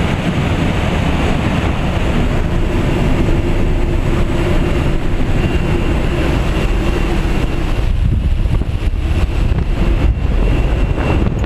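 Wind roars loudly through an open aircraft door.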